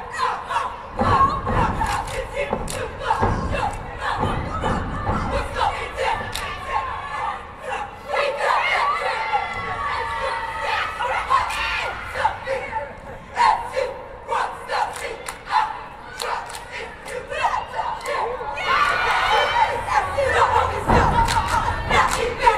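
Dancers stomp their feet in rhythm.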